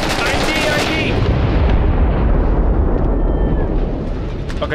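A large explosion booms and rumbles nearby.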